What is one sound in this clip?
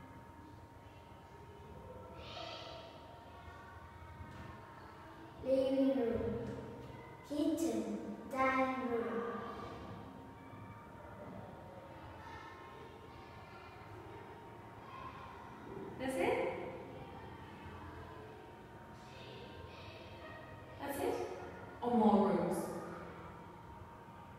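A young boy speaks softly close by.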